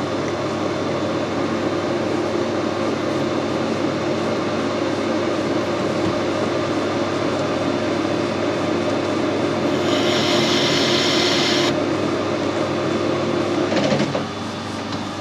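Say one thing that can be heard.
A lathe motor hums and whirs steadily, then winds down.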